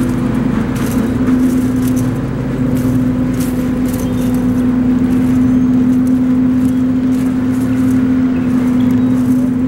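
A rake scrapes and rustles through wood chips.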